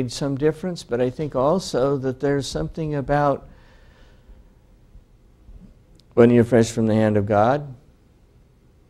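An older man speaks calmly in a room with a slight echo.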